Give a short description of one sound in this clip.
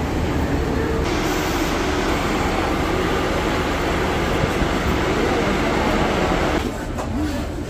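A bus engine rumbles and idles close by.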